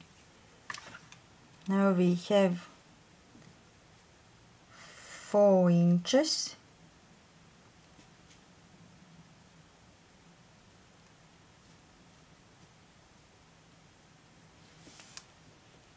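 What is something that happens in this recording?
A soft tape measure rustles lightly against crocheted yarn.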